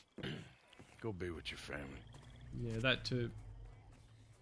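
A second man answers in a deep, calm voice.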